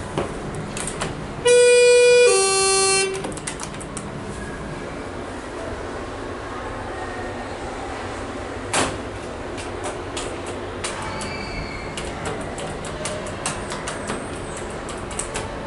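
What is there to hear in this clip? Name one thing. Elevator buttons click as they are pressed.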